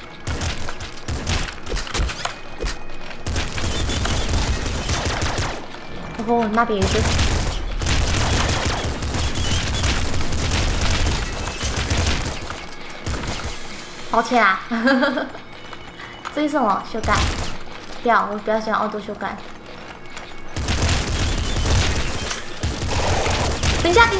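Rapid gunfire and laser blasts crackle in bursts.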